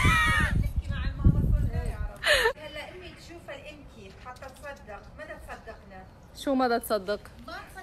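An elderly woman calls out from a distance.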